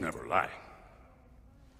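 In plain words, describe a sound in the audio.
An elderly man speaks in a low, calm voice.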